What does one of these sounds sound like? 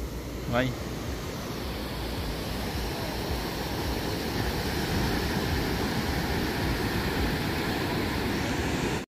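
Waves break and wash onto the shore.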